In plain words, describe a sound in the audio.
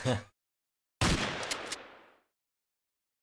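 Gunshots crack and echo.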